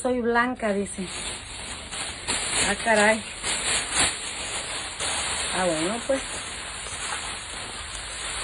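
Plastic sheeting rustles.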